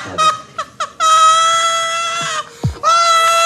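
A woman shrieks loudly in long, high screams.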